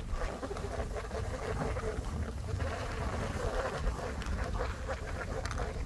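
Skis swish steadily through deep powder snow.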